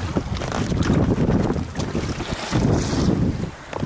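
Water splashes against an inflatable boat.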